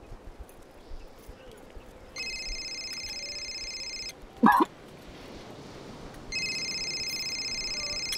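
A woman sips from a spoon.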